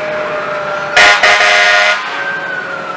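A fire engine's horn blasts briefly and loudly.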